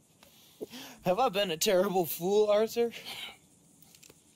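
A young man speaks in a shaky, tearful voice, close by.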